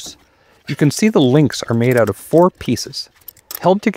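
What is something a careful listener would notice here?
Locking pliers snap shut on metal.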